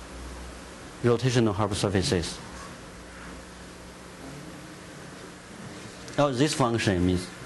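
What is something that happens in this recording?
A young man speaks calmly in short phrases.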